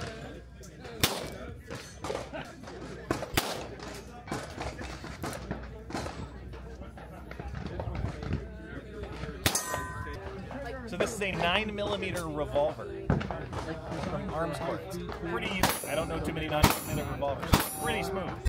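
A handgun fires single sharp shots outdoors.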